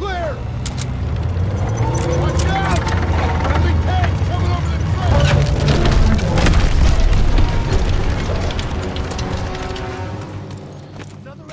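A tank engine rumbles deeply nearby.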